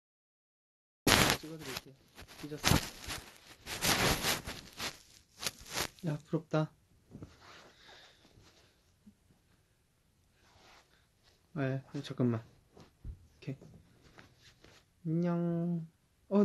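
A young man speaks calmly close to the microphone.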